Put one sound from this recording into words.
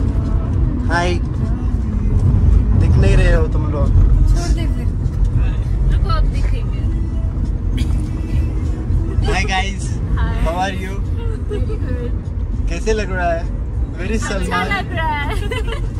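Young women laugh and talk excitedly close by.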